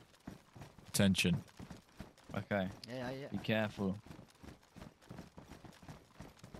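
Footsteps crunch on a gravel road at a steady walking pace.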